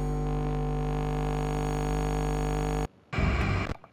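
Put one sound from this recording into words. Loud electronic static buzzes steadily, then cuts off abruptly.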